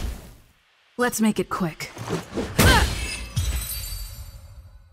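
A blade swings and strikes with sharp whooshes.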